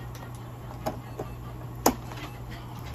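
A wire cage clicks and rattles as hands handle it.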